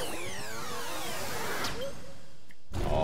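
A whooshing, sparkling burst of game sound effects plays and fades.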